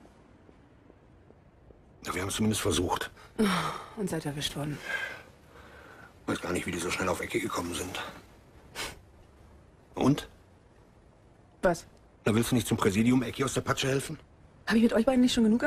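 An elderly man speaks calmly and gravely nearby.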